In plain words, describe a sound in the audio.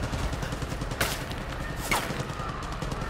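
Gunshots crack a few times.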